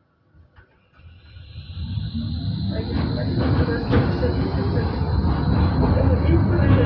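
A tram's electric motor hums and whines, rising in pitch as the tram pulls away.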